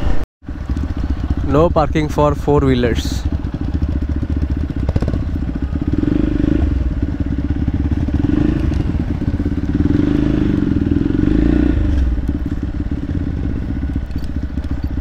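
A motorcycle engine hums steadily close by.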